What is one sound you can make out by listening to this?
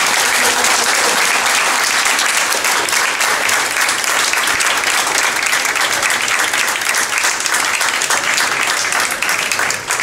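An audience claps steadily in a room.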